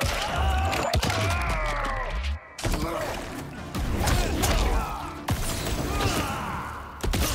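Heavy punches and kicks land with sharp thuds.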